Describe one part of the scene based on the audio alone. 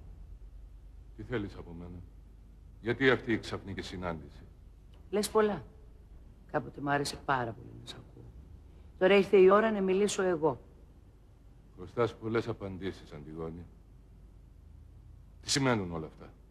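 A man speaks calmly and quietly nearby.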